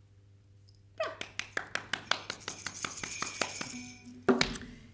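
A woman claps her hands quickly.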